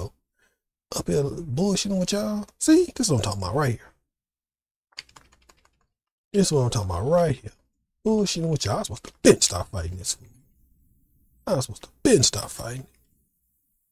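A man talks calmly into a microphone, heard up close.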